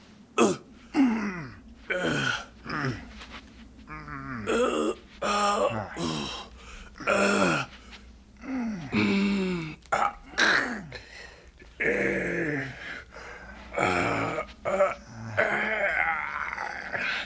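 A man grunts and groans with strain.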